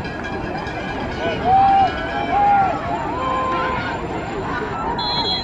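A crowd cheers and shouts from the stands outdoors.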